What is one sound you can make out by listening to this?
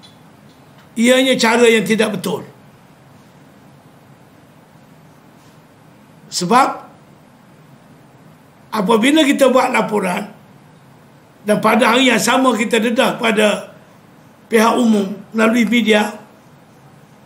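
An elderly man speaks forcefully into microphones, in short bursts with pauses.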